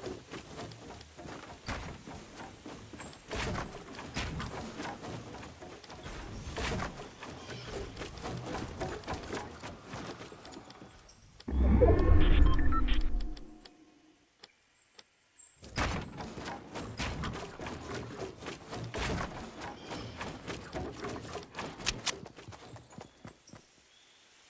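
Wooden walls and ramps snap into place with rapid knocks and clatter.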